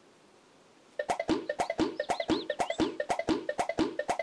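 A hand slaps a head rapidly over and over.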